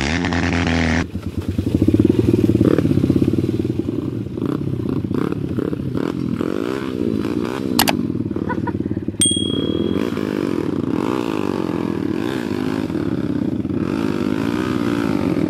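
A dirt bike engine revs and sputters up close.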